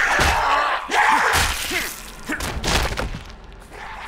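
A wooden weapon thuds into a body.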